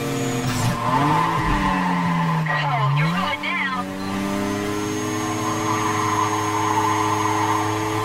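Tyres screech through sharp corners.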